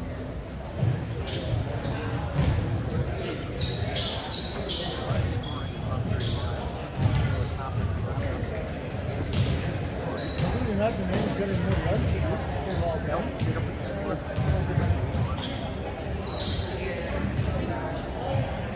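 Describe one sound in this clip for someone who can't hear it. Many people chatter in the distance in an echoing hall.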